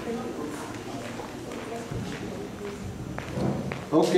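A man speaks quietly to a woman close by.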